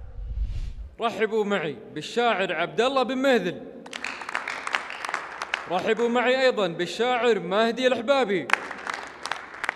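A young man chants loudly into a microphone.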